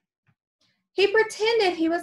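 A young woman reads aloud with animation, close to a microphone.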